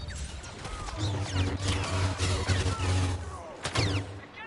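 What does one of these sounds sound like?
A humming energy blade buzzes and swings.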